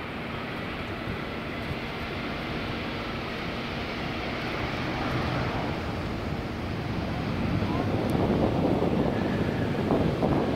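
A jet airliner's engines roar loudly, growing louder as it passes close by.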